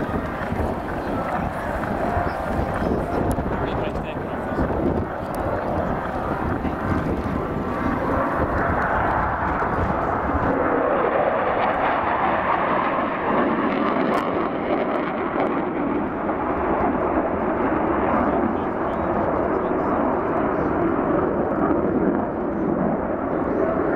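Two jet planes roar loudly overhead, the rumble shifting as they pass.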